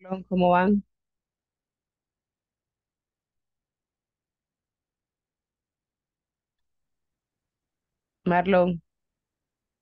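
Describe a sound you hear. A woman speaks in short bursts over an online call.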